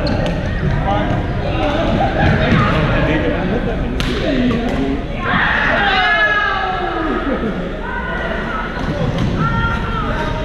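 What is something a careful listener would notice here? Young men talk and call out across a large echoing hall.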